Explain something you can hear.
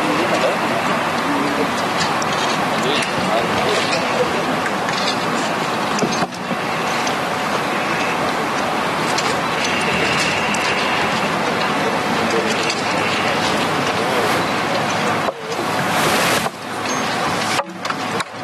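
A noisy crowd talks and shouts close by.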